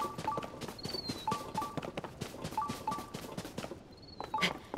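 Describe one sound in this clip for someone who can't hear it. Quick footsteps patter across grass.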